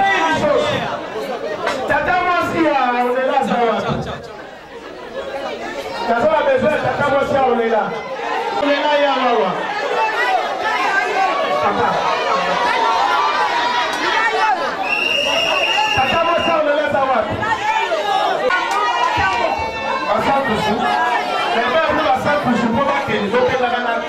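A crowd chatters and cheers around.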